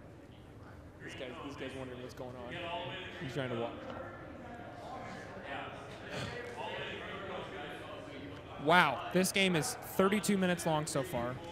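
Young men talk and call out to each other.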